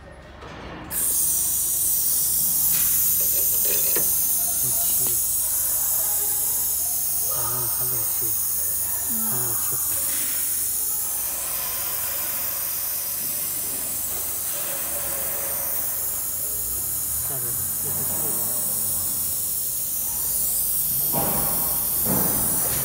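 Pressurised gas hisses loudly and steadily.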